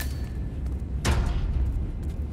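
A metal locker door slams shut.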